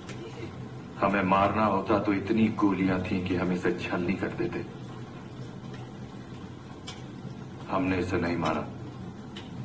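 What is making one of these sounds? A middle-aged man speaks firmly and gruffly nearby.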